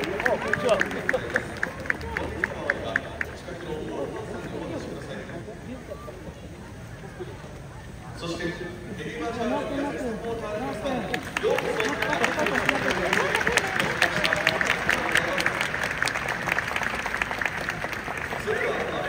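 Spectators clap rapidly in rhythm.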